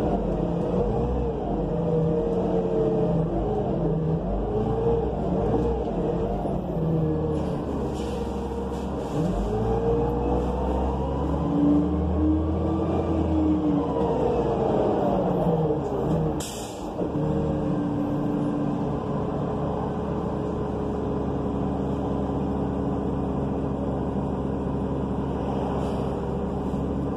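A bus rattles and rumbles as it rolls along.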